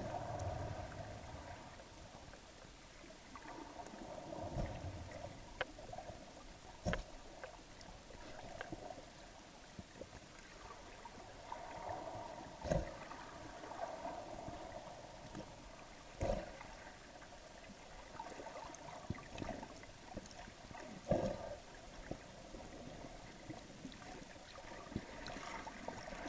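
Water sloshes and thumps, heard muffled from underwater.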